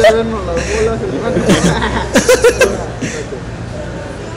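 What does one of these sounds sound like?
Young men laugh and talk loudly close by.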